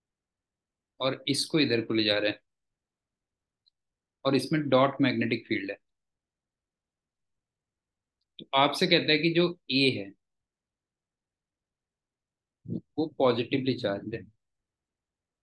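A man speaks calmly in bursts through a microphone over an online call.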